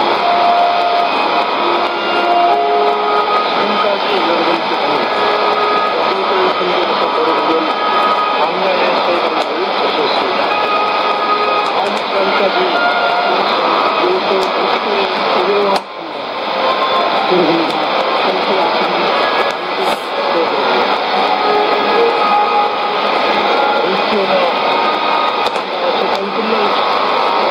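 A shortwave radio plays a crackly, noisy broadcast with faint whistling tones.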